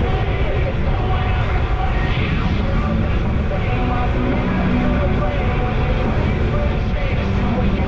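Wind buffets the microphone while riding outdoors.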